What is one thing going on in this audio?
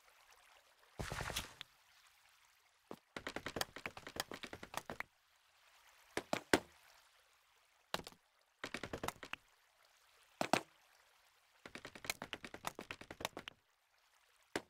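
Wooden blocks are broken with rapid knocking taps.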